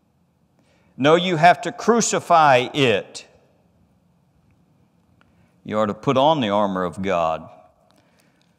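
A middle-aged man speaks calmly and deliberately into a microphone, with pauses.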